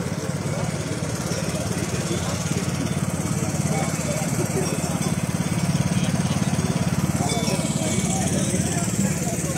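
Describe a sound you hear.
A small engine chugs steadily nearby.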